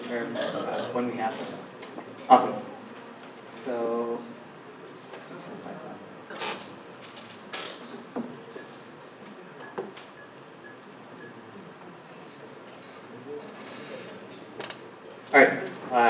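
A man speaks calmly through a microphone in a large, echoing hall, with pauses.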